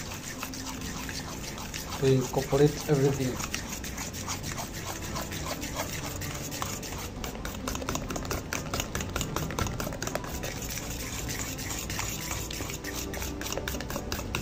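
Hot oil sizzles softly.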